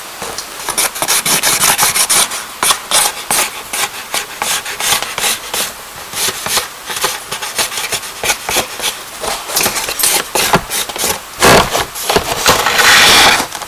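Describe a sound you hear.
A pen scratches and scrapes across paper in quick strokes.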